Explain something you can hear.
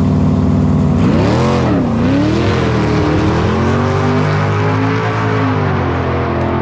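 A car engine revs hard and roars as the car speeds away.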